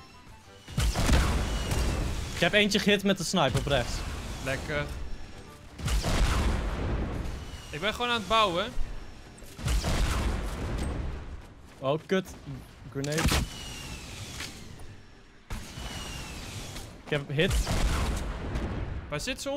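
Game gunfire and explosions burst repeatedly.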